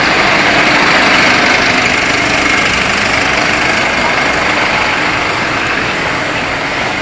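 City traffic hums steadily on a busy street.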